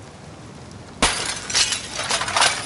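A window pane shatters.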